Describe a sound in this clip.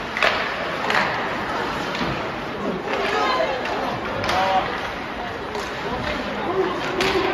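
Hockey sticks knock against the puck and each other with sharp clacks.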